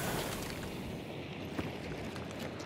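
A gunshot bangs.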